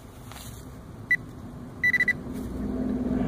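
A handheld metal detector beeps in short, high tones.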